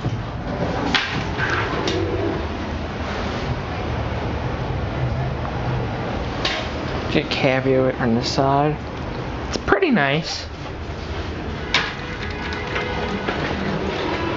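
Elevator doors slide open and shut with a rumble.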